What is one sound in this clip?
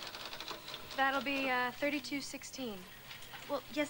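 A young woman speaks up loudly.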